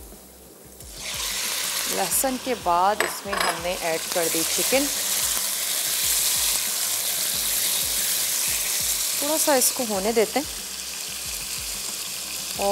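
Chicken pieces sizzle steadily in hot oil.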